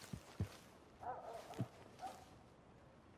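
A man calls out.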